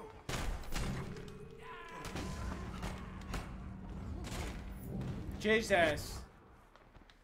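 Heavy blows thud during a fight.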